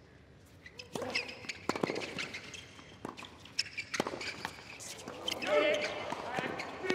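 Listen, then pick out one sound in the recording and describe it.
A tennis ball is struck with sharp pops of a racket.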